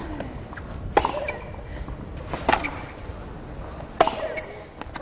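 Tennis balls are struck sharply by rackets, back and forth in a quick rally.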